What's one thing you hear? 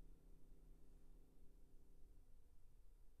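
A piano's last chord rings out softly and fades in a large hall.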